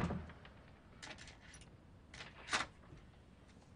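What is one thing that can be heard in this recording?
A metal latch rattles on a door.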